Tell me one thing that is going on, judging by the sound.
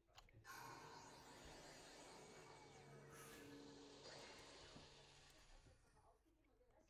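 A magical shimmering whoosh swells and slowly fades.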